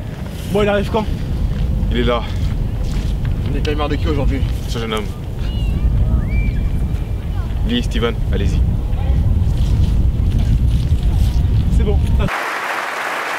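A young man speaks calmly to a small group outdoors, close by.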